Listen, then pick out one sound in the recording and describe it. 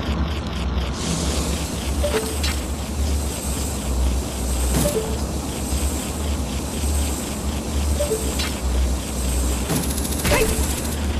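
Fire roars and crackles steadily.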